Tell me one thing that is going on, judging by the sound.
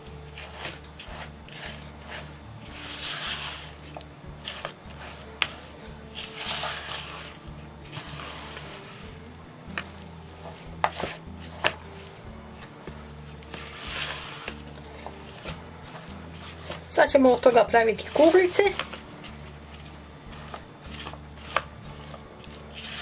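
A spatula scrapes and stirs thick dough in a plastic bowl.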